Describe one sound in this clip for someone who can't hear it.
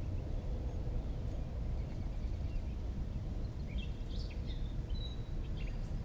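A knife scrapes against a small stone.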